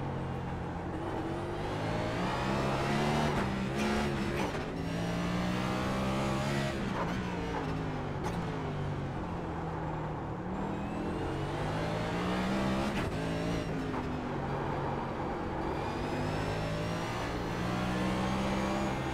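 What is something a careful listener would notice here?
A race car engine roars, revving up and down through gear changes.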